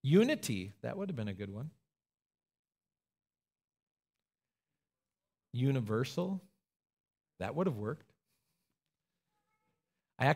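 A man speaks calmly and gently into a microphone, with pauses.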